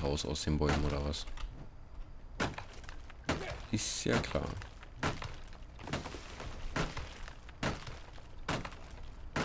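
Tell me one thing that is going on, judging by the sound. An axe chops into a tree trunk with regular, sharp thuds.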